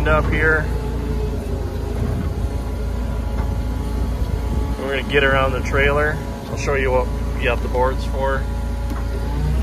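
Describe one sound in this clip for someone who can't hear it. A diesel engine idles with a steady low rumble close by.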